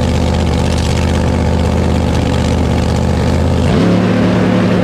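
A drag racing car engine idles with a loud, throbbing rumble.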